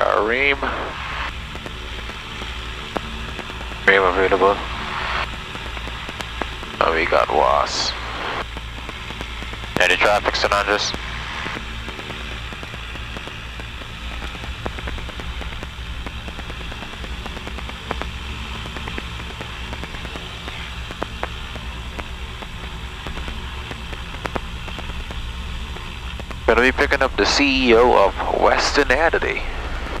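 A plane's engine drones steadily in the cabin.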